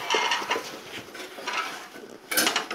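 A woman talks with animation nearby.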